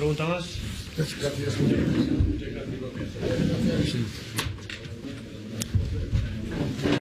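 Several men talk at once.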